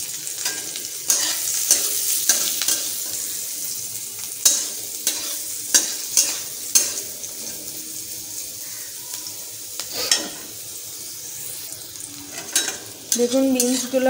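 A metal spatula scrapes and clinks against a metal pan.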